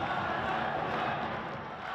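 A large crowd cheers and chatters in a big echoing arena.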